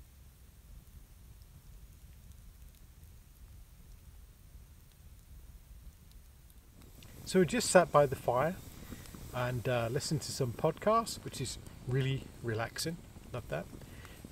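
A campfire crackles softly outdoors.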